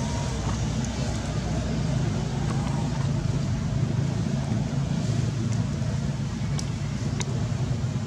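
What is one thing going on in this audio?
Dry leaves rustle under a monkey's feet.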